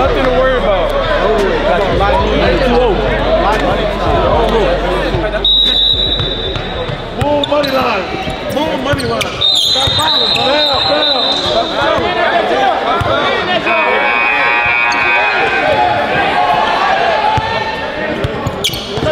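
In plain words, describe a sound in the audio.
A crowd of young men chatter and shout with animation in a large echoing hall.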